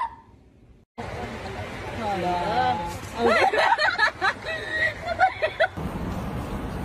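Young women shriek and laugh outdoors.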